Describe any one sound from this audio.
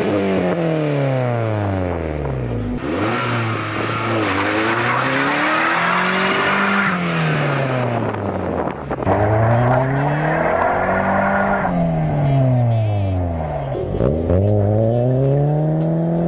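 A car engine revs hard, rising and falling repeatedly.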